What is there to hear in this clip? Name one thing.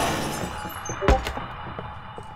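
A wooden wardrobe door shuts with a dull thud.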